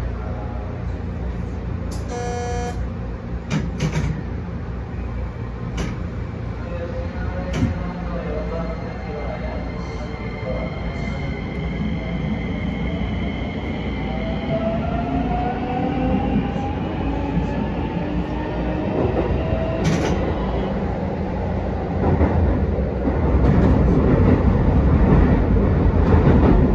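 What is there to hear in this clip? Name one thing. A train rumbles along the rails, its motor whining higher as it speeds up.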